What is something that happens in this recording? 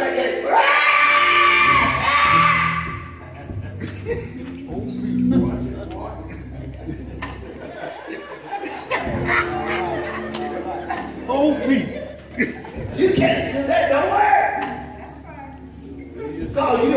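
A man preaches with animation into a microphone, heard through loudspeakers in an echoing hall.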